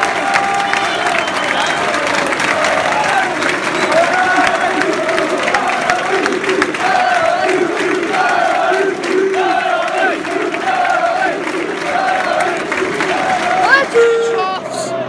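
A large stadium crowd sings and chants loudly in unison.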